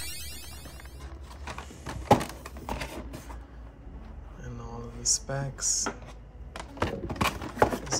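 Cardboard packaging rustles and taps in hands.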